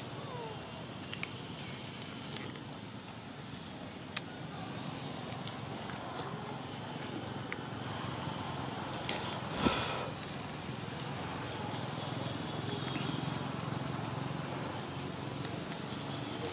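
A small monkey chews and nibbles on food.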